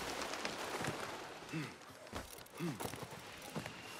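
A body lands heavily and rolls with a thud.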